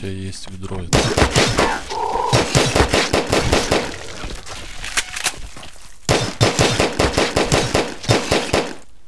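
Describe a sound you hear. Rapid gunfire bursts loudly and repeatedly.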